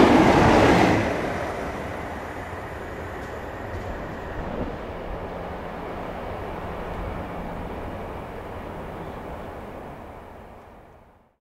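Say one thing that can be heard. A departing train's rumble fades into the distance.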